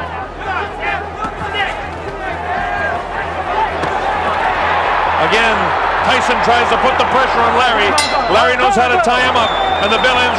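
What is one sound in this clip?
A large crowd cheers and roars, growing louder.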